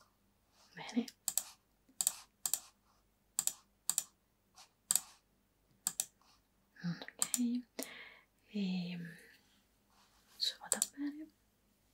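A young woman speaks calmly close to a microphone, in short bursts with pauses.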